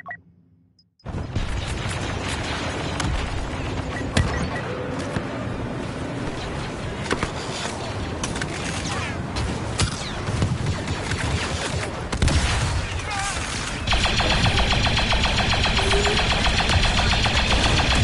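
Battle noise rumbles and crashes all around.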